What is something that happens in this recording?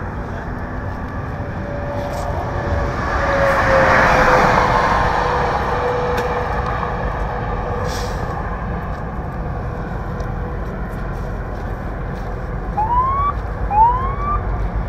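Traffic rumbles steadily on a nearby highway.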